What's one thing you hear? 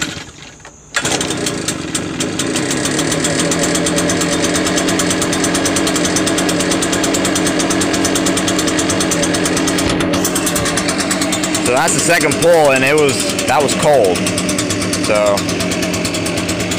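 A leaf blower engine roars to life and runs loudly and steadily.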